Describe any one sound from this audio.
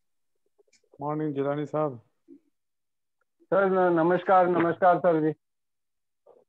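A man speaks calmly and warmly over an online call.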